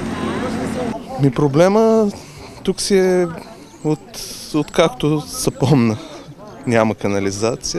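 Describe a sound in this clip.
A young man speaks calmly into a microphone close by.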